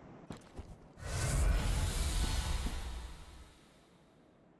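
A deep, rushing whoosh swells and then fades.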